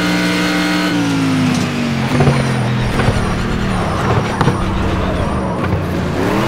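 A racing car engine drops in pitch and crackles as the car brakes.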